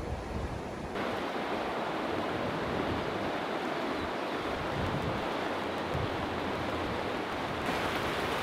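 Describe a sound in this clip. A river rushes steadily nearby.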